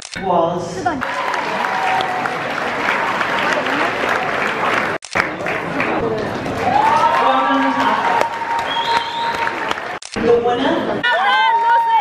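An audience applauds and cheers loudly.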